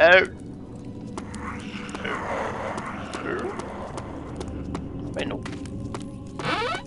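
Footsteps tap on a stone floor.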